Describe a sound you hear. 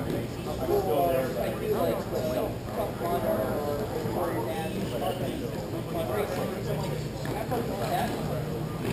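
Hockey sticks clack against a ball and the floor.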